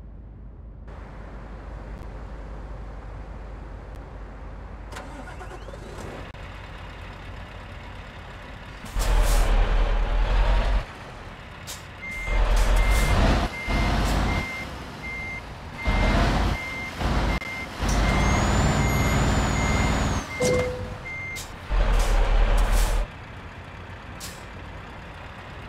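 A heavy truck engine rumbles steadily and roars in loud bursts.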